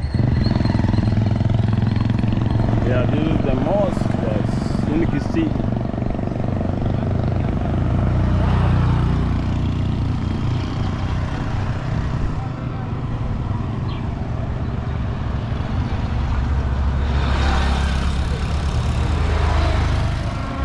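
Other motorbikes pass by on the road.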